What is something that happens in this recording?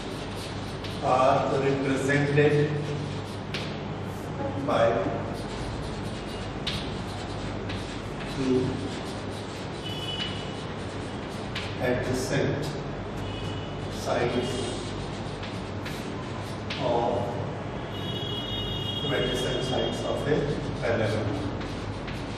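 A man speaks slowly in a small room, pausing often.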